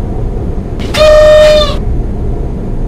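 A train horn gives a short loud blast.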